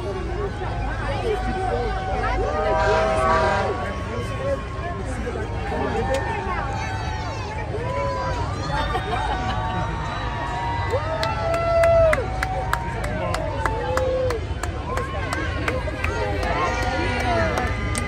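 A crowd cheers and claps.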